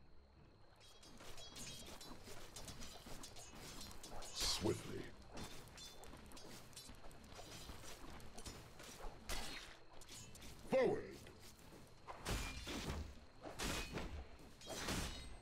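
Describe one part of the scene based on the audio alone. Short clashing hits and magic bursts sound out in a fight.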